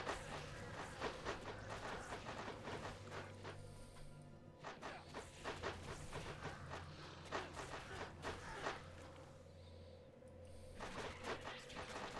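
Game combat effects hit and crackle in quick bursts.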